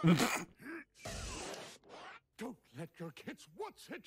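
A man speaks theatrically and with animation.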